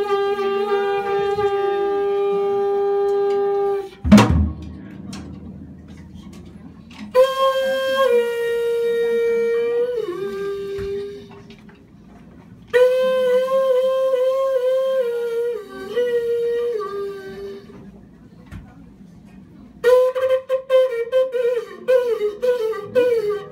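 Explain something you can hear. A trumpet plays long held notes and short phrases.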